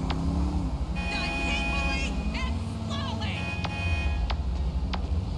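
A phone chimes with short electronic alert tones.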